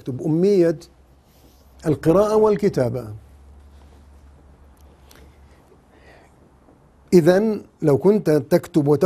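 A middle-aged man speaks with emphasis close to a microphone, pausing between phrases.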